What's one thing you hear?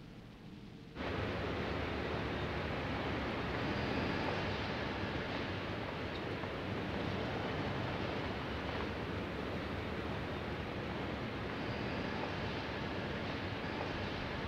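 Distant traffic hums steadily across a town.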